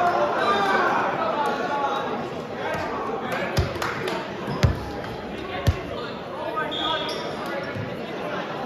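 Young men talk and call out in a large echoing gym.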